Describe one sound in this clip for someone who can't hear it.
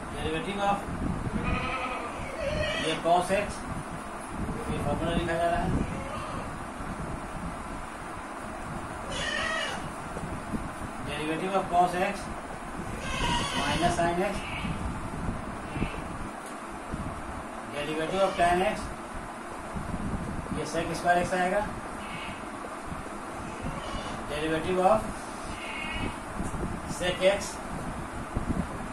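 A middle-aged man speaks calmly nearby, explaining.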